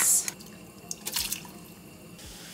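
Sauce squelches out of a squeezed bottle.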